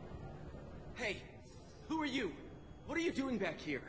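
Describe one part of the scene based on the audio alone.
A man speaks sharply and questioningly, close by.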